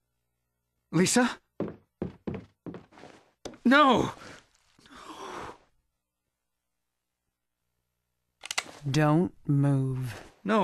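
A young man speaks softly and with concern.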